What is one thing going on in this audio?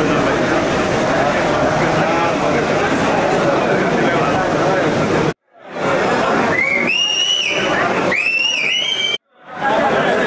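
A large crowd of men talks and murmurs loudly indoors.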